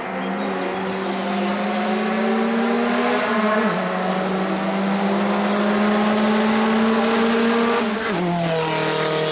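A rally car engine roars loudly, revving up through the gears as the car approaches and passes close by.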